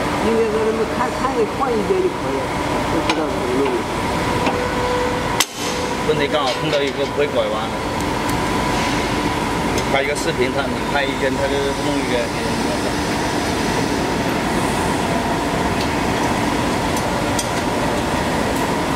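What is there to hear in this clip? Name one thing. Metal parts clink and click as they are handled.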